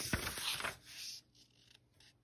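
Paper pages rustle as a book page is turned.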